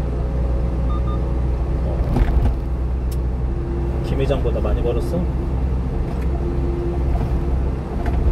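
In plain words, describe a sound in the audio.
A car engine hums steadily while driving.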